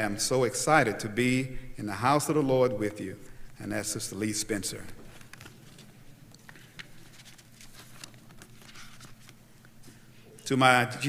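A man speaks slowly and melodically through a microphone.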